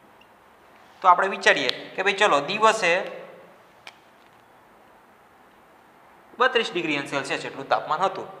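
A young man speaks calmly and clearly, as if teaching, close to the microphone.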